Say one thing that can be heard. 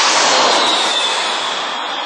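A jet airliner roars low overhead.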